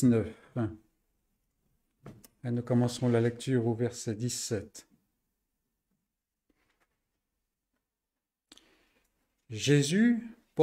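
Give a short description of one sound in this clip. An elderly man reads aloud calmly and slowly into a close microphone, with pauses.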